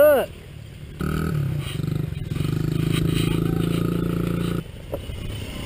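A motorbike engine idles with a steady low rumble.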